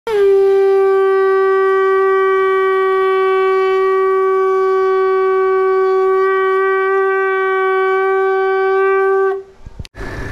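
A young man blows a conch shell in one long, steady, loud note.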